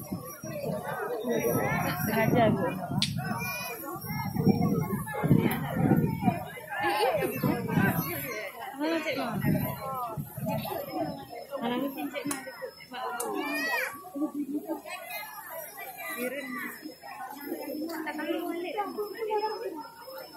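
A large outdoor crowd chatters and calls out nearby.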